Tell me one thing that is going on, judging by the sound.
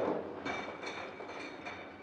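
Metal kegs clank as they are stacked.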